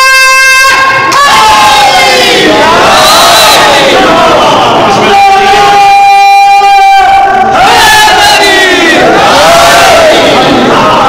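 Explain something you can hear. A man recites loudly and fervently into a microphone, heard through a loudspeaker in an echoing hall.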